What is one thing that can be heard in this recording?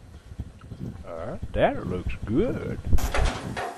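A man speaks in a low, drawn-out voice close by.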